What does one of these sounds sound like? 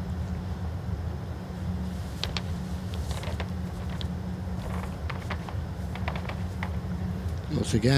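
A bowl rolls softly across a carpeted green.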